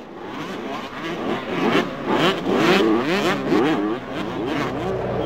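Off-road buggy engines rev as they drive by.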